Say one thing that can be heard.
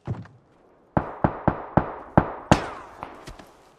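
Footsteps thud quickly on the ground as someone runs.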